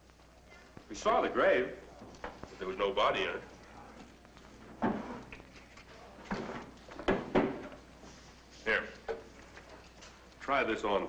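A second man answers in a conversational tone.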